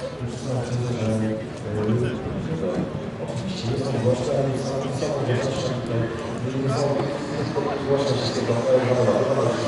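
A man talks with animation through a microphone and loudspeakers outdoors.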